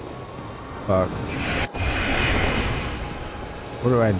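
A magic blast bursts with a rushing whoosh.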